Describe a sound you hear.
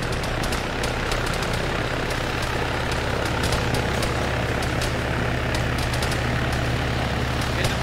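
A helicopter's rotor thumps and its engine whines close by, growing louder as it comes in to land.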